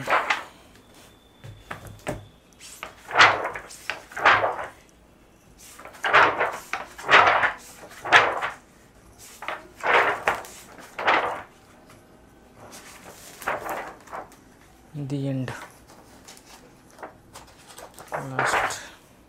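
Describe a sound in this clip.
Stiff glossy pages flip over one after another with soft swishes.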